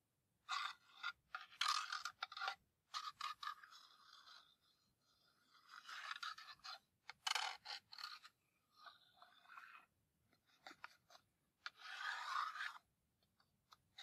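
Wooden matchsticks rattle and click against a cardboard box.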